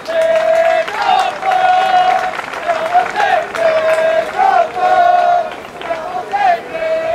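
A crowd sings a chant outdoors.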